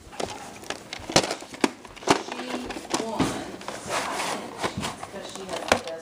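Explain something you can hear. A magazine's paper rustles as it is handled.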